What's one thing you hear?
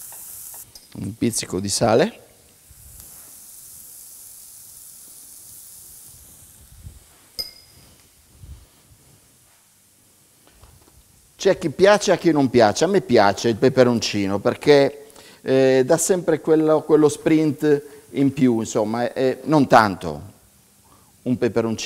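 A man speaks calmly and clearly into a microphone close by.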